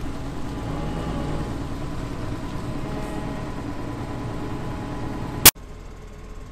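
A combine harvester engine rumbles steadily nearby.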